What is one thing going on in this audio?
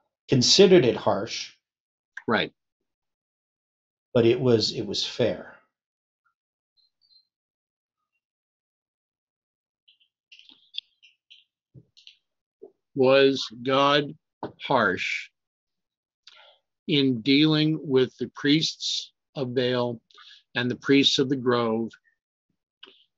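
A middle-aged man reads out aloud and calmly, close to a microphone, with pauses.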